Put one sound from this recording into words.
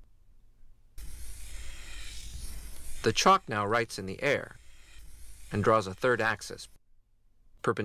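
Chalk scrapes across a board.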